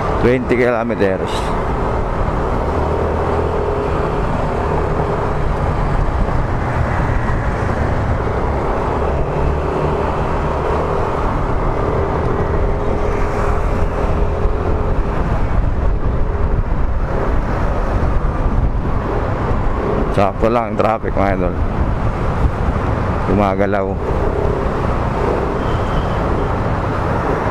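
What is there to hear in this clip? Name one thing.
Wind rushes past a microphone on a moving motorcycle.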